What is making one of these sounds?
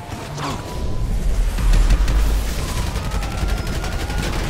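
A car engine roars by.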